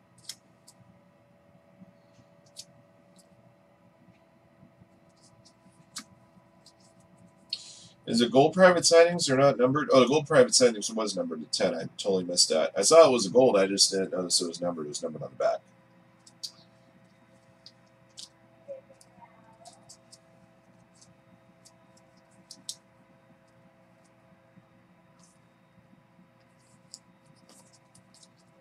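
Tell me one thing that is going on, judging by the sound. Trading cards rustle and click as they are handled.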